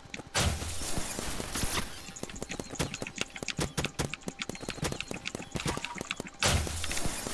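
Rapid gunshots fire from a game weapon.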